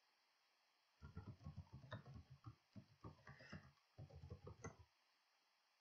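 Keys click softly as someone types on a keyboard.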